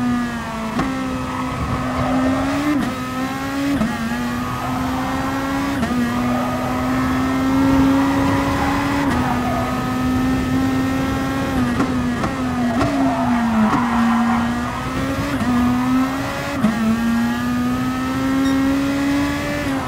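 A racing car engine roars and rises in pitch through the gears, dropping sharply at each gear change.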